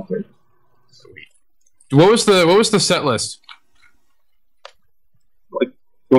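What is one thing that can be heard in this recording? A man speaks in short bursts, close to a microphone.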